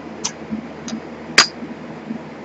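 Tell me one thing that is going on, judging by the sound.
A glass stopper clinks against a glass flask.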